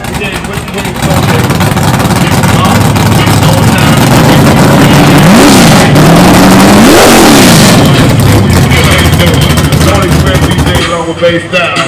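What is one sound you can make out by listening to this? A car engine revs loudly, rising and falling.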